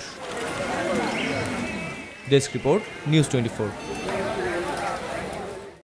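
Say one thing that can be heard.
A crowd of people chatters in a busy outdoor street.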